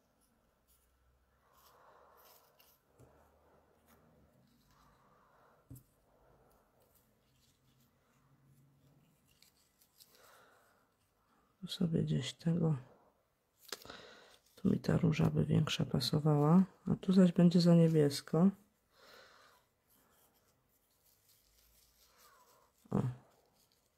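Paper flowers rustle softly as they are handled.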